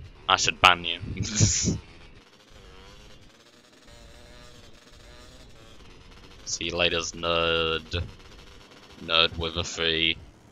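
A small motorbike engine hums steadily.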